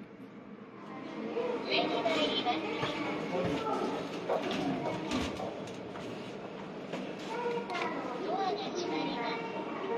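A finger presses a button with soft clicks.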